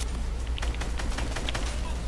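A gun fires several quick shots.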